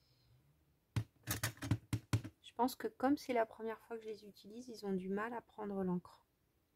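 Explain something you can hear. Fingers tap and press a rubber stamp onto paper.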